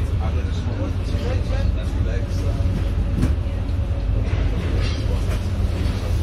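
A vehicle engine rumbles steadily close by.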